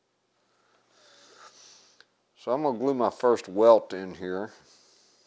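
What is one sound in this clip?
A brush dabs and scrapes softly on leather.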